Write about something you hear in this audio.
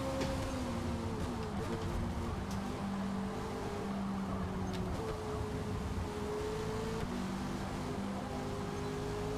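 Other racing car engines whine nearby.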